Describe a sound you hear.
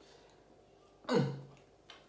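A young man chews food.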